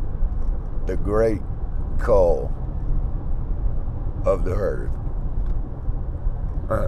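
A car engine and road noise rumble steadily inside a moving car.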